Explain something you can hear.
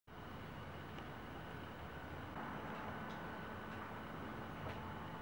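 Fingernails tap lightly on a phone's touchscreen.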